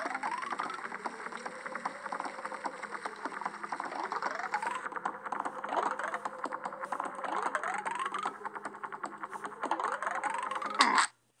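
Rising chimes from a mobile game ring as coins are collected.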